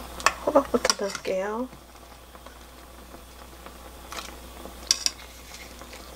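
Broth simmers and bubbles in a pot.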